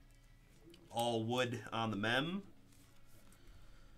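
Plastic card wrappers crinkle softly as hands handle them.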